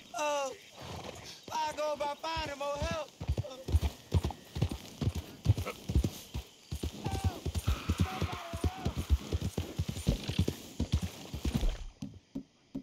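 Horse hooves thud steadily on a dirt path.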